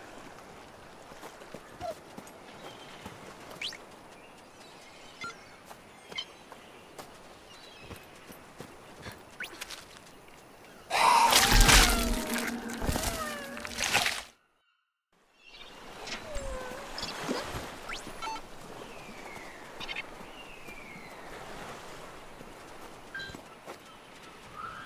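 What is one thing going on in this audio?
Quick light footsteps patter on the ground.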